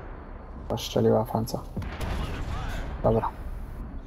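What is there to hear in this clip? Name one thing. A tank cannon fires with a booming crack.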